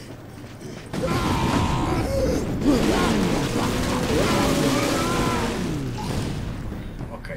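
Harsh fighting sounds clash and thud loudly.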